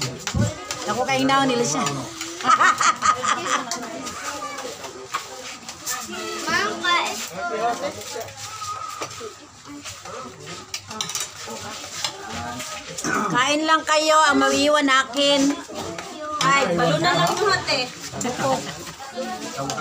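Several women chatter nearby.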